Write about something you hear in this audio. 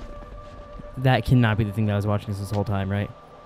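A man speaks in a low voice.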